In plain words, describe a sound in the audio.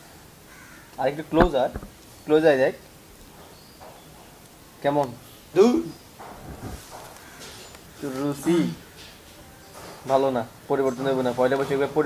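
A young man speaks casually nearby, in short bursts.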